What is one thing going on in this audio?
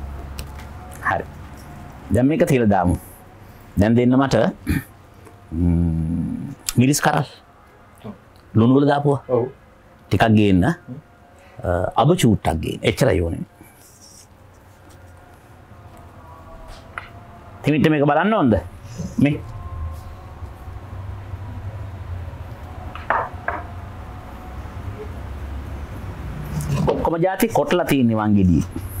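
An elderly man talks calmly and with animation close to a microphone.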